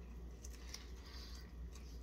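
A man chews food.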